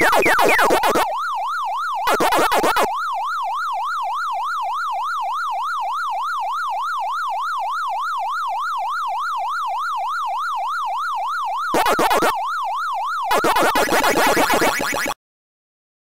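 A retro arcade game siren wails up and down steadily.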